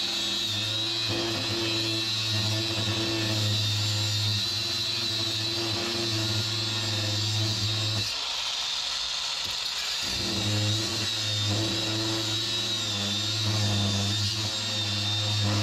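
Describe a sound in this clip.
A grinder disc grinds harshly against metal.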